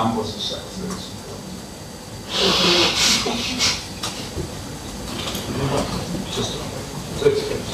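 A man speaks calmly into a microphone in a large echoing room.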